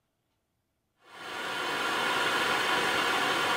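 A blowtorch roars steadily with a loud hiss.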